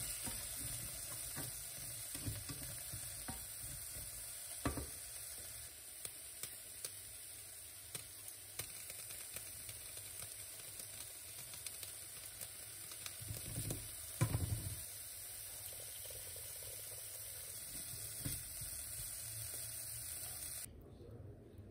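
Vegetables sizzle in a hot pan.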